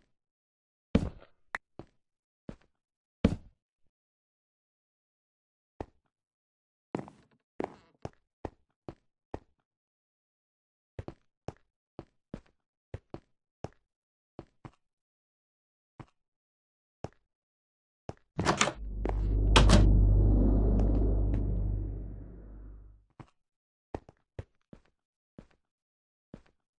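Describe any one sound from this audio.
Footsteps tap on stone in short bursts.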